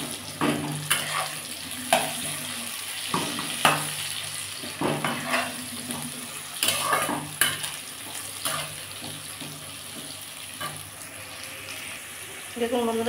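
A metal spatula scrapes and clanks against a pan as vegetables are stirred.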